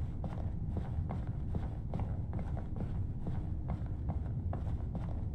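Footsteps click steadily across a hard floor.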